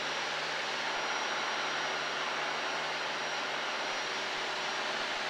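A small plane's engine drones loudly and steadily from inside the cabin.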